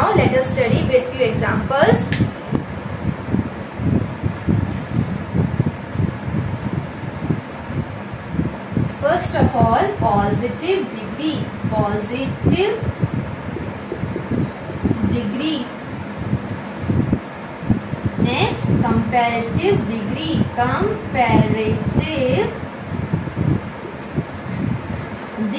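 A young woman speaks calmly and clearly, like a teacher explaining, close by.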